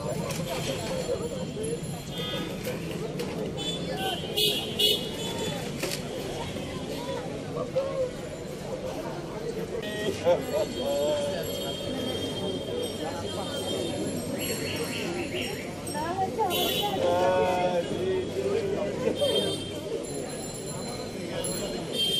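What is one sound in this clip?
A crowd of people murmurs and talks nearby, outdoors.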